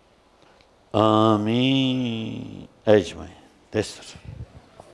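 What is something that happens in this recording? An elderly man chants a prayer loudly through a microphone.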